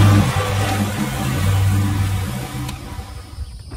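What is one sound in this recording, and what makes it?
A riding mower engine drones loudly up close.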